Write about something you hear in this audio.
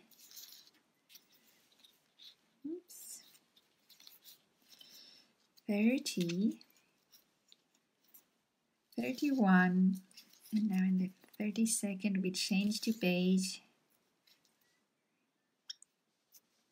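A crochet hook softly rubs and clicks through yarn.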